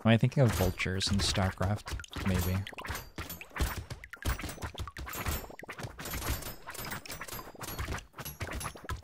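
Rapid electronic shots and hit effects pop and crackle.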